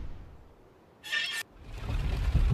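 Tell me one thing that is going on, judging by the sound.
A wooden mechanism clicks into place.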